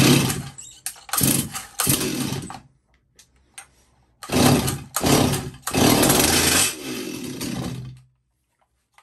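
A chainsaw's starter cord is yanked repeatedly with a rasping whir.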